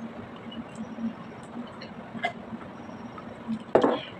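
A woman gulps a drink from a glass.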